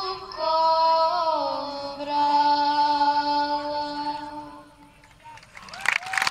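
A woman sings a long held note through loudspeakers in a large open space.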